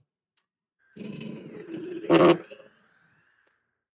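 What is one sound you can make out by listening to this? A cordless drill whirs as it drives a screw.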